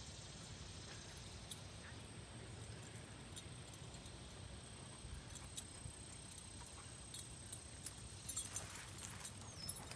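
Wind rustles softly through tall grass outdoors.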